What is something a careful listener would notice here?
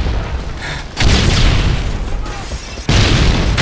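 A grenade explodes with a loud, deep boom.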